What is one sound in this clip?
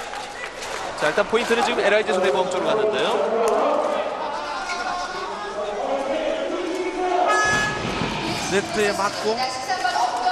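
A large crowd cheers in an echoing indoor hall.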